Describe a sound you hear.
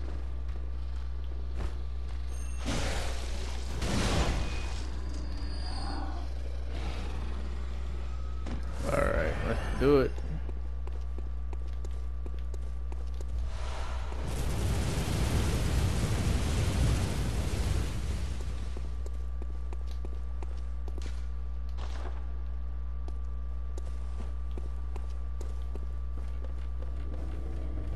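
Footsteps tap on a stone path.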